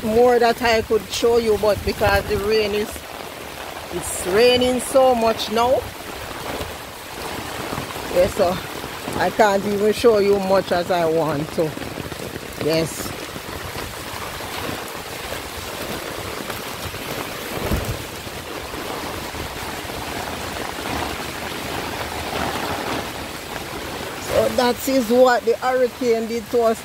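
Heavy rain falls steadily on the ground.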